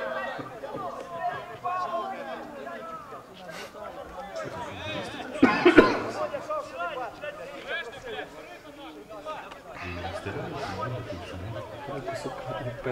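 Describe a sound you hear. Men shout and call out across an open field.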